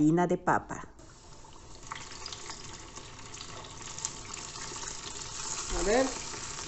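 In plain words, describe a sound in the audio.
Oil sizzles and crackles loudly as food fries.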